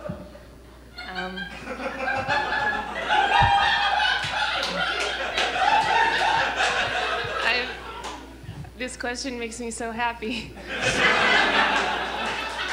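Young women and men speak clearly from a stage, heard from the audience in an echoing hall.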